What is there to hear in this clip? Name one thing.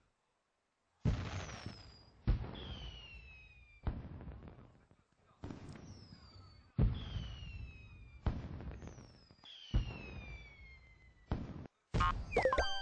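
Bright game chimes ring out one after another, each quickly fading.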